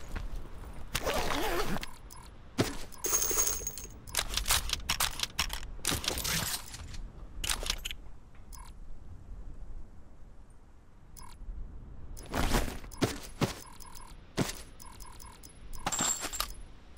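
Gear rustles and clicks in short bursts as items are picked up.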